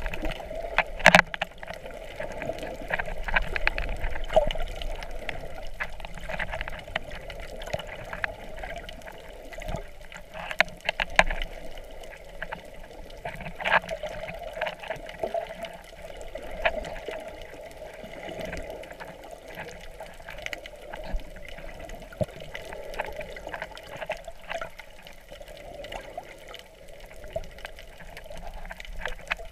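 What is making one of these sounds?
Muffled clicks and knocks sound underwater.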